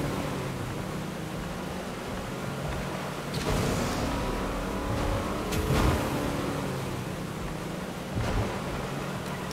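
Water splashes and sprays against a speeding boat.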